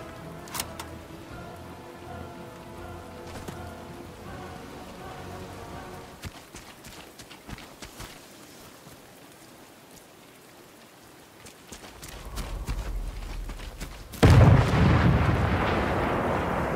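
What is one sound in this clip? Footsteps crunch quickly over wooden boards and grass.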